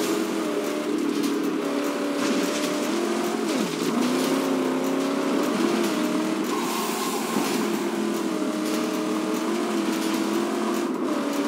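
A car engine roars steadily, its pitch rising and falling as it shifts gears.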